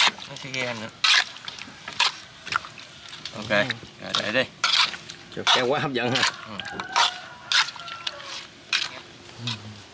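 A metal spoon scrapes and clinks against a metal pan.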